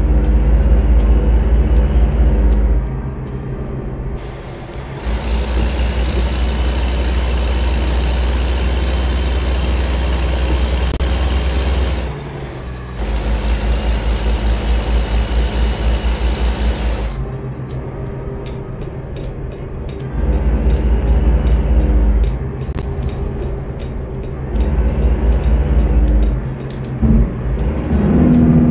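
A heavy truck engine rumbles steadily, growing louder and quieter by turns.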